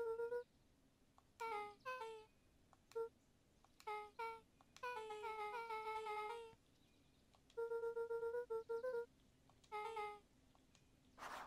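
Short, pitched electronic blips chatter quickly as dialogue text types out.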